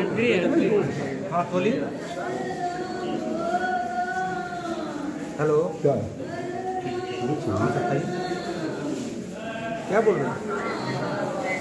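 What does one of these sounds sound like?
A young man speaks close by, into a phone.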